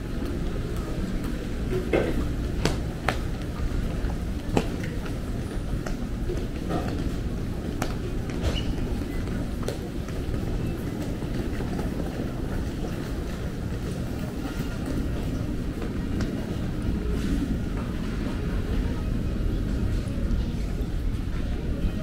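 A murmur of people fills a large echoing hall.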